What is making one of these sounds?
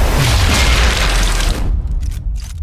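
A loud rifle shot booms and rumbles away.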